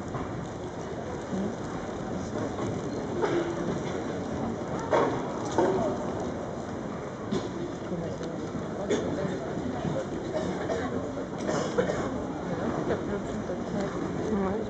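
Horse hooves thud on soft ground.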